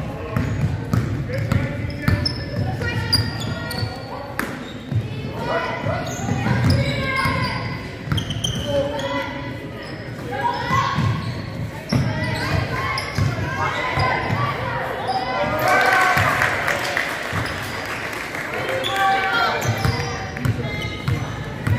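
Young girls shout and call out to each other in a large echoing gym.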